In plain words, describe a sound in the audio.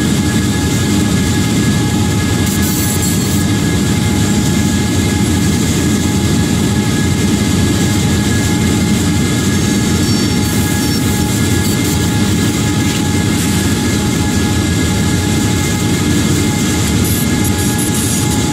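Steel wheels roll and clatter on rails.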